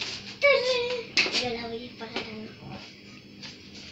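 A metal pot clanks on a stove.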